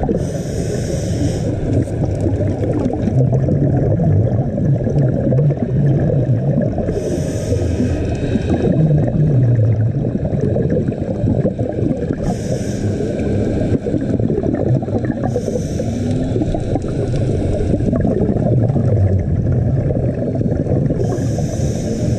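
Air bubbles from a diver's regulator gurgle in regular bursts underwater.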